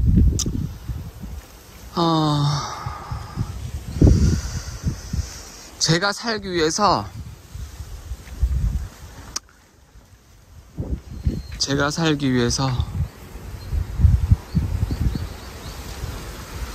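Wind gusts against the microphone outdoors.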